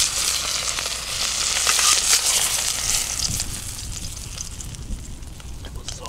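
Food sizzles and crackles over a fire.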